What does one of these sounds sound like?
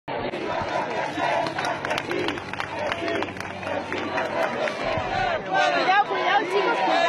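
A crowd of people talk and shout close by outdoors.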